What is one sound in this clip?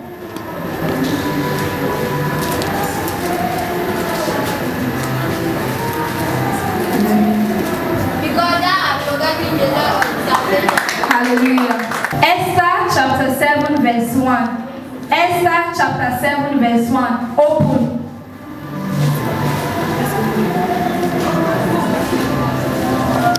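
A group of voices sings together.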